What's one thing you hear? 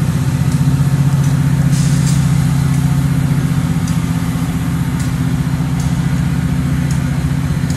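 A diesel train engine idles nearby with a deep, steady throbbing rumble.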